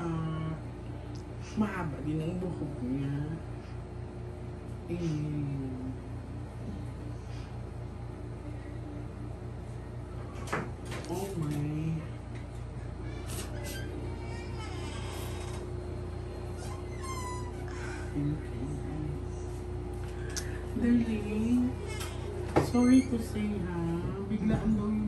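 A woman speaks calmly and steadily up close.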